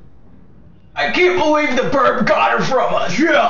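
A young man shouts loudly close by.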